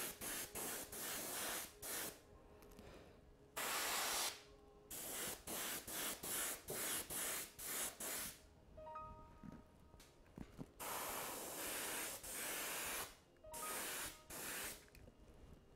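An airbrush hisses in short bursts.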